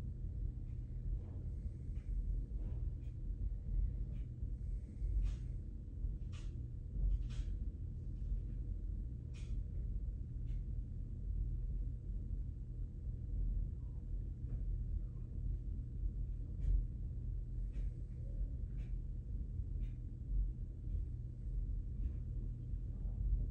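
Hands handle a device close by, with faint clicks and rustles.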